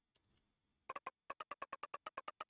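Game text blips chirp rapidly.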